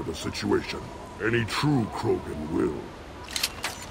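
A man speaks slowly in a deep, rough voice.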